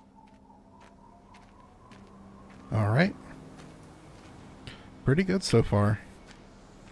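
Footsteps tap slowly on pavement.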